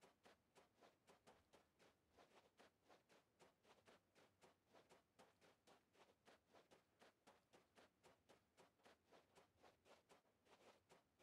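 Footsteps run over sand.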